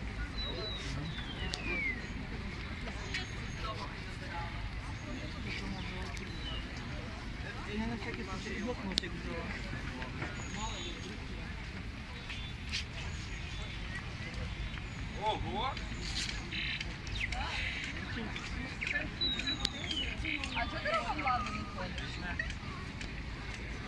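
A crowd of young people and adults chatter nearby outdoors.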